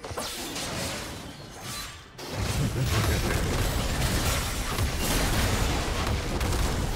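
Fantasy battle sound effects of spells and blows clash in a video game.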